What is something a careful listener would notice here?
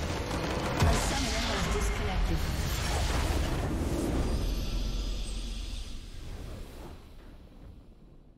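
Triumphant game music swells and then fades away.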